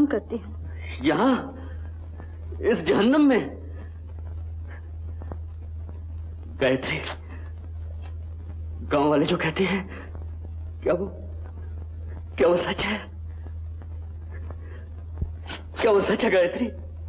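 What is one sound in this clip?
A young man speaks pleadingly, close by.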